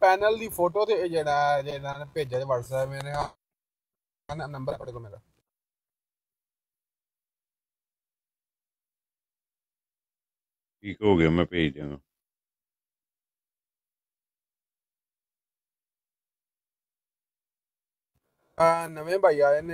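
A man speaks through an online call in short bursts with pauses.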